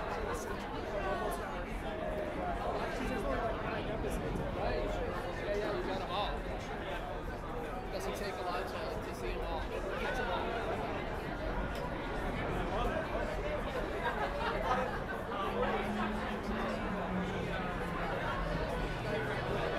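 A live band plays music outdoors.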